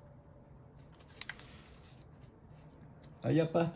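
Paper rustles under handling.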